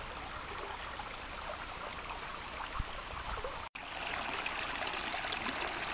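A small stream trickles and splashes over rocks.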